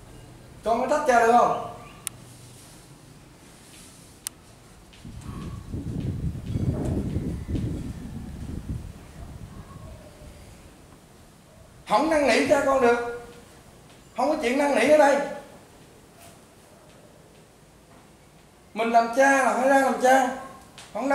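A man speaks calmly nearby in short bursts.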